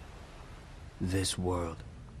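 A man speaks calmly and slowly, close by.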